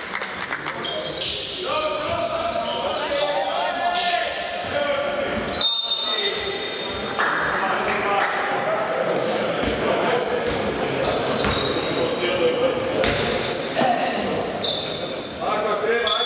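Sneakers squeak sharply on a hardwood court, echoing in a large hall.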